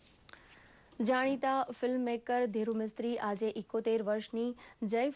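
A woman reads out calmly and clearly into a microphone.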